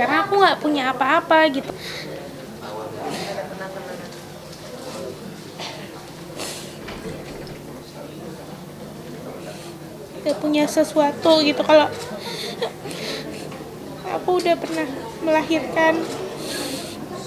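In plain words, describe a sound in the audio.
A young woman speaks tearfully, close by.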